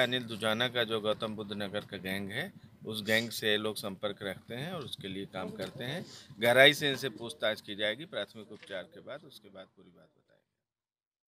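A middle-aged man speaks calmly and firmly into a microphone, close by.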